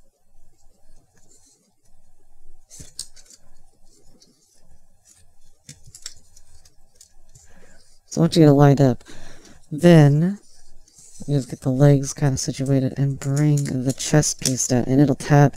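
Plastic parts of a toy figure click and rattle as hands move them.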